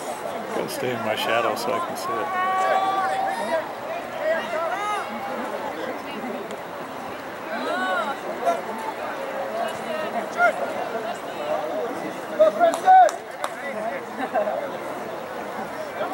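Young men shout in the distance across an open field.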